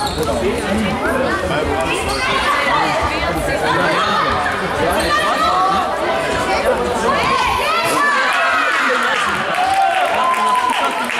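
Young players shout to each other across the hall.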